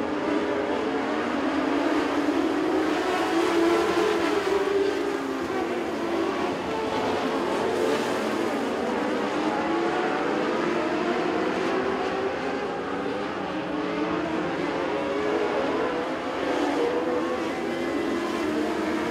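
Many race car engines roar loudly together.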